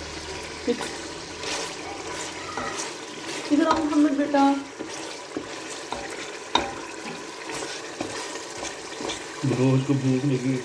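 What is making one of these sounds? A stew bubbles and sizzles in a pot.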